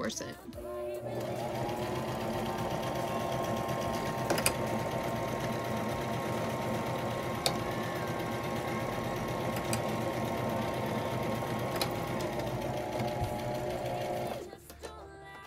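A sewing machine hums and whirs steadily as it stitches, speeding up and slowing down.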